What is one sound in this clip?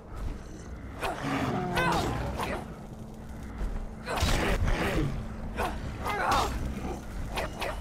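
A beast roars and growls loudly.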